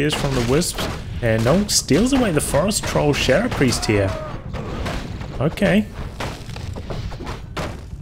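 Weapons clash and strike in a skirmish.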